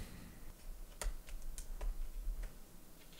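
A cable plug clicks into a laptop.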